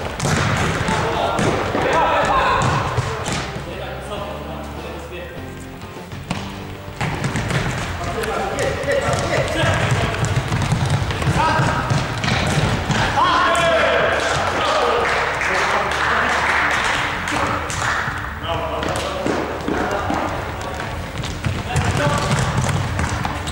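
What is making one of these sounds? A ball is kicked with dull thumps in a large echoing hall.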